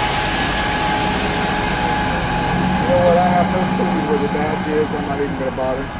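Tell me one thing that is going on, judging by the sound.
A limousine engine rumbles as it pulls away.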